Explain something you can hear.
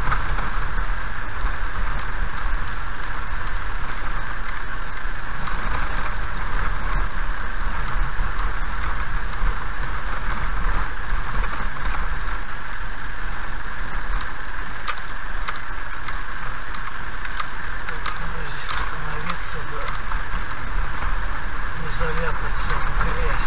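Tyres roll over a wet road.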